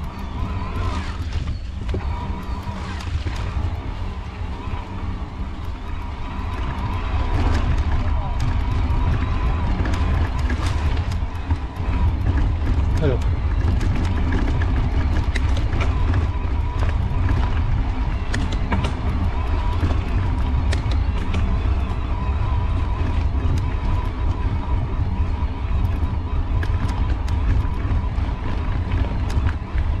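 A bicycle's freewheel whirs steadily.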